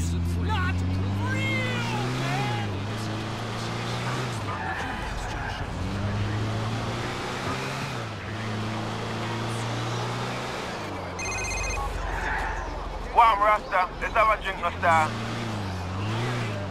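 A van engine hums and revs as it drives.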